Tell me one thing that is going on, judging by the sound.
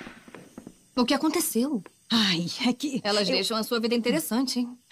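A young woman speaks sharply and with feeling close by.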